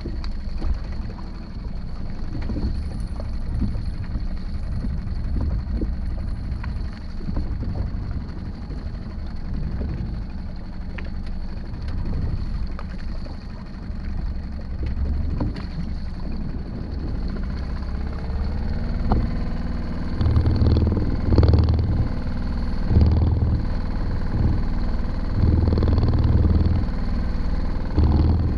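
Water laps and splashes against the hull of a small boat.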